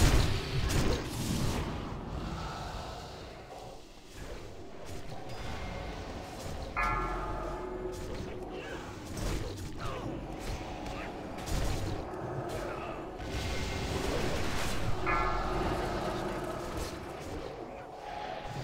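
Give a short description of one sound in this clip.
Weapons clash and strike in combat.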